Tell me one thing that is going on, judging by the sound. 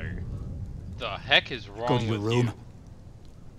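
A man speaks sternly up close.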